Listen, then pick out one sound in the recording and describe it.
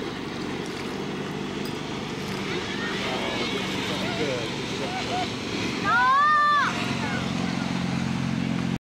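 Water splashes and sprays against an inflatable tube.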